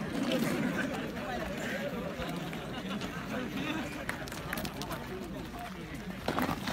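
A crowd of young men chatter outdoors.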